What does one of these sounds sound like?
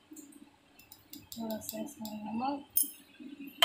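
A metal spoon clinks against a clay pot.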